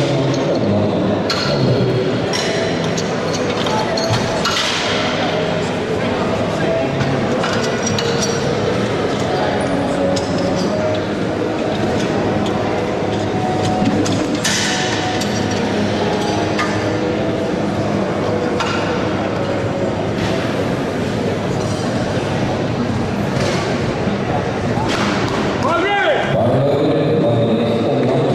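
A crowd chatters and murmurs steadily in a large echoing hall.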